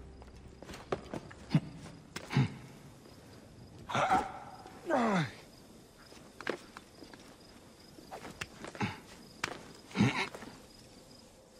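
Hands grip and scrape on stone as a figure climbs a wall.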